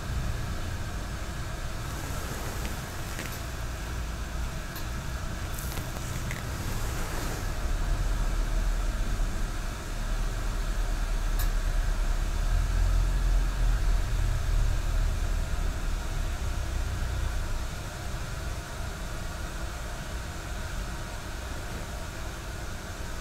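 Cloth rustles softly as a man folds a silk cloth.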